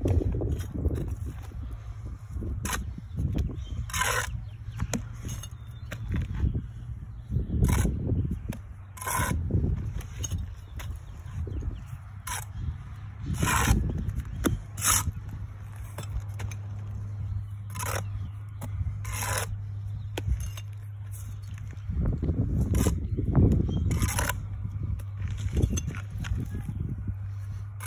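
A brick knocks as it is set down on mortar.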